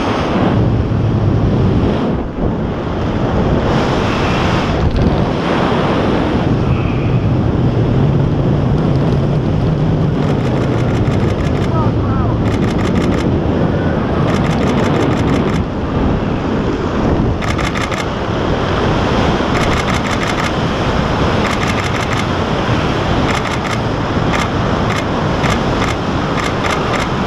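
Parachute fabric flaps and flutters in the wind.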